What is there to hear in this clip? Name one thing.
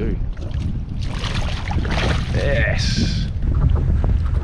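Water splashes as a fish is pulled into a landing net.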